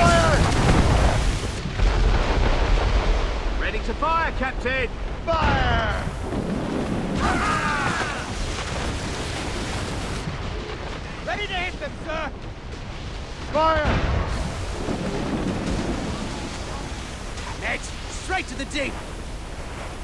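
Heavy waves crash and roar against a ship.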